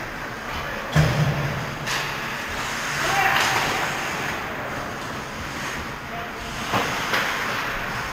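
A hockey puck thuds against sticks and boards, echoing.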